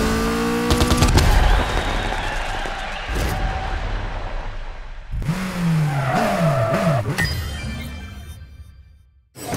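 A race car engine roars and revs.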